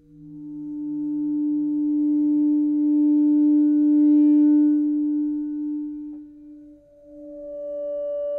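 A synthesizer plays a sustained, wavering electronic tone that swells and then shifts in pitch.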